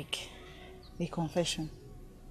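A middle-aged woman speaks, close by.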